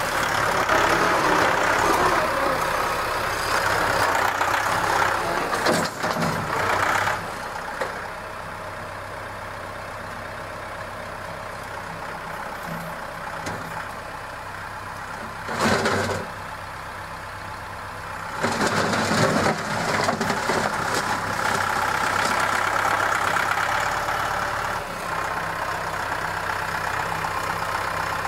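A tractor engine rumbles steadily nearby.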